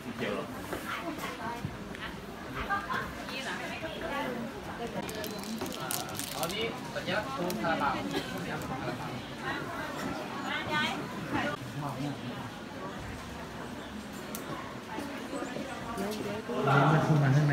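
A crowd of men and women chat nearby outdoors.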